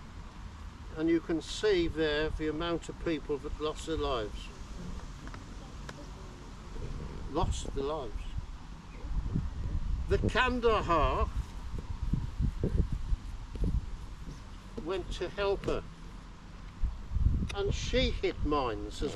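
An elderly man speaks calmly outdoors, a little way off.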